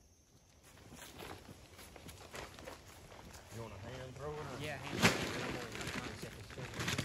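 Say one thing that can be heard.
Footsteps crunch through dry leaves.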